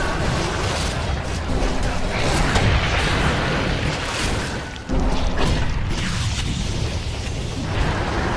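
Weapons clash and strike again and again.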